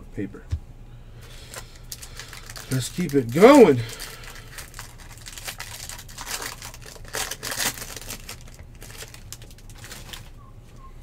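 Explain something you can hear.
A foil wrapper crinkles and tears as it is ripped open.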